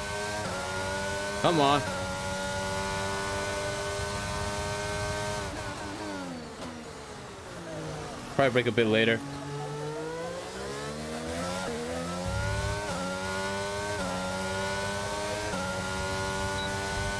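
A racing car engine whines at high revs, dropping in pitch when braking and rising again when accelerating.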